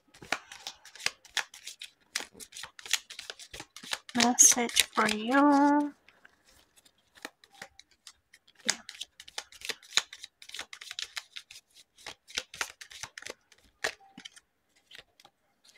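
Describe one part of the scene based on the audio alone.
Cards slide and tap against one another on a table.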